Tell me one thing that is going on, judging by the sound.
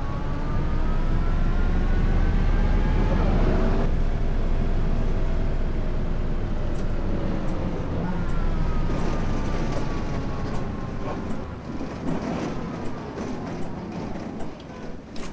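A bus engine drones and rises in pitch as it speeds up, then drops as the gears change.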